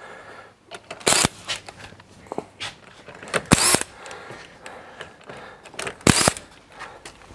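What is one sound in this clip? An impact wrench buzzes in short bursts.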